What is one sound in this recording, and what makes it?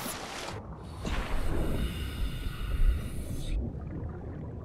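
Water splashes and bubbles on diving back under.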